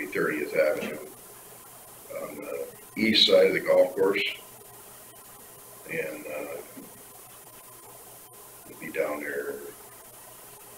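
A man speaks calmly in short phrases.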